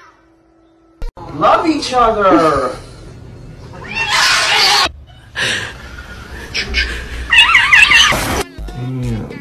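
A young man shouts and laughs excitedly.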